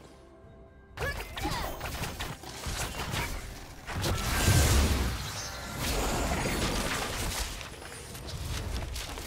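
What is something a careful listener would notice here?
Video game sound effects of magic spells and blows clash and whoosh.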